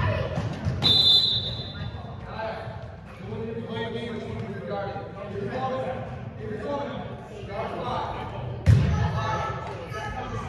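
Children shout and call out in a large echoing gym.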